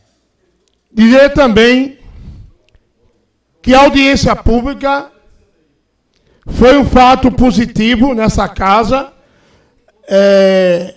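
A man speaks into a microphone in short, calm phrases.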